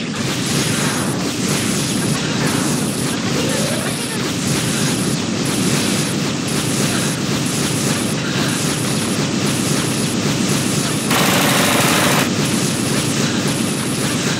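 Rapid video game hit sounds crackle and clash without pause.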